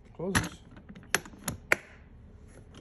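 Plastic latches snap open with sharp clicks.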